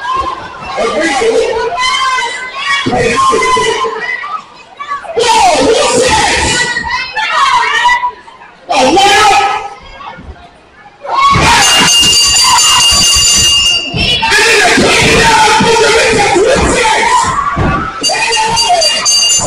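A crowd cheers and shouts loudly in an echoing hall.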